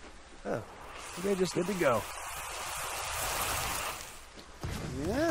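A burst of smoky energy whooshes and roars.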